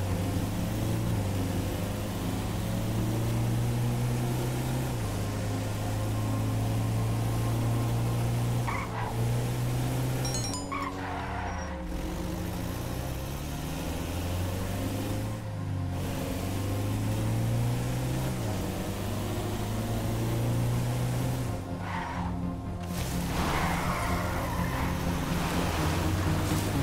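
A vehicle's engine hums steadily and revs up and down as it drives.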